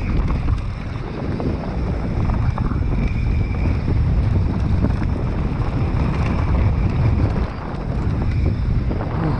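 Bicycle tyres rumble and crunch over a dry dirt trail.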